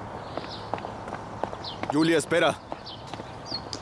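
Footsteps tap on a paved street.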